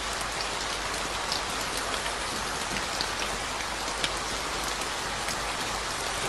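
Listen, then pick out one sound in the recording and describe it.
Rain falls steadily and patters on the ground outdoors.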